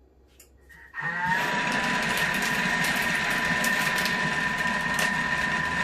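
A kitchen machine's motor starts up and whirs steadily with a high whine.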